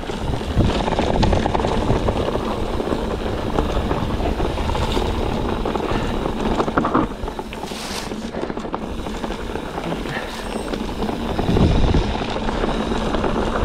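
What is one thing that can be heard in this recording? Wind rushes past a microphone outdoors.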